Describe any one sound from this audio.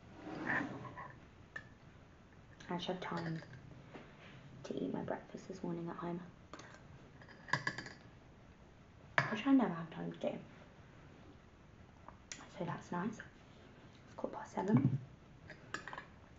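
A spoon clinks against a glass jar.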